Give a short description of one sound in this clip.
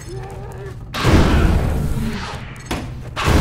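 A heavy wooden cabinet crashes and thuds to the ground.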